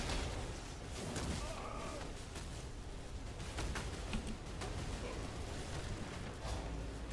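Fiery spell effects whoosh and crackle.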